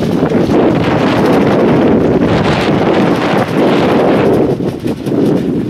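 Small waves lap and ripple across open water.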